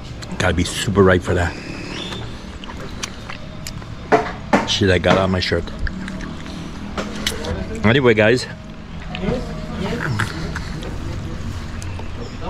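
A man chews and munches fruit noisily.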